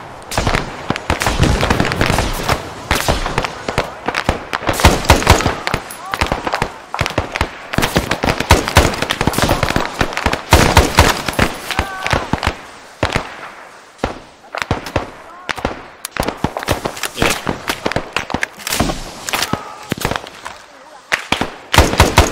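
A rifle fires rapid bursts of loud shots close by.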